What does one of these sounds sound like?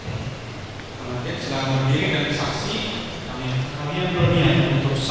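A man reads aloud calmly through a microphone in a large echoing hall.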